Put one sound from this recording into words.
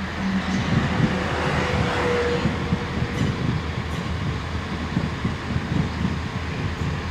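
A train rushes past close by with a loud rumble and clatter of wheels on rails.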